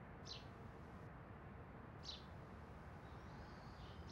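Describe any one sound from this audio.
Fingers tap lightly on a phone.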